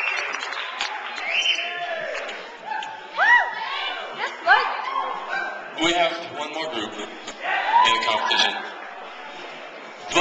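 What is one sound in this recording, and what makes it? Young men talk and shout excitedly close by.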